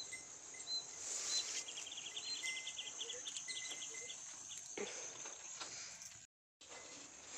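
A young woman speaks quietly and calmly close by.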